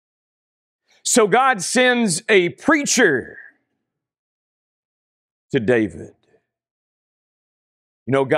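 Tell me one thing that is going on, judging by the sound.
A man speaks with emphasis into a close microphone, pausing between phrases.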